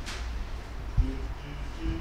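A car door closes with a thud.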